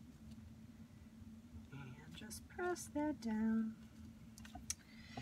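Paper rustles softly as hands press on it.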